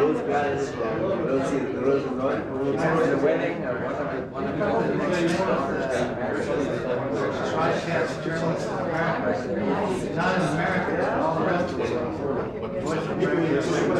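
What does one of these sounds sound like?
An older man talks with animation, close by.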